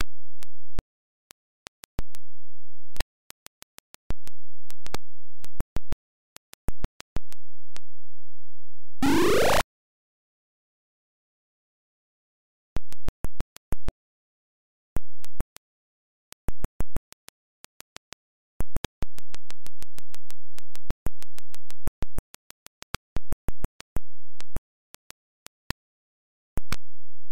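A low electronic buzz hums on and off.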